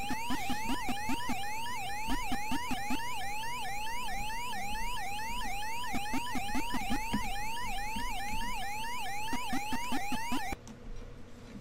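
A game's siren wails up and down in a fast repeating rhythm.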